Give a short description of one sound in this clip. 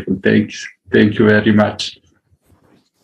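A middle-aged man talks over an online call.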